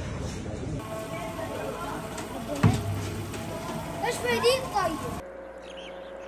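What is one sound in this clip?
Water pours from a tap into a plastic jug.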